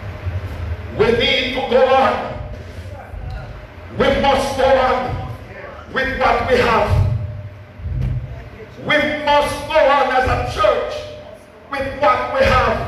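An elderly man preaches with animation through a microphone and loudspeakers, in an echoing hall.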